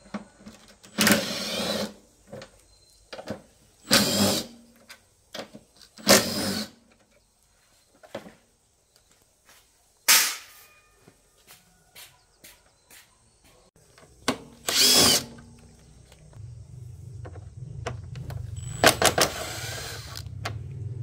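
A cordless impact driver whirs in short bursts.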